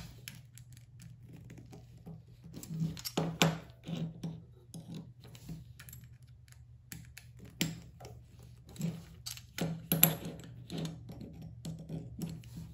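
A small screwdriver clicks and scrapes against metal parts.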